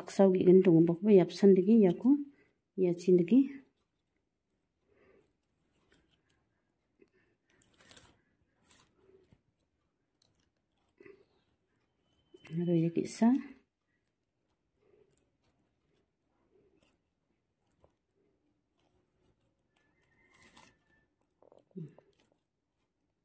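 Stiff plastic strips rustle and click softly as they are woven.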